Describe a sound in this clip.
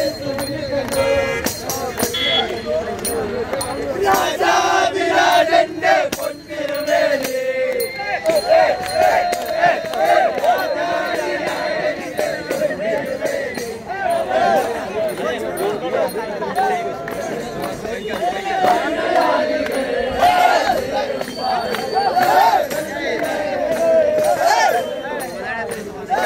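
A group of men sing together outdoors.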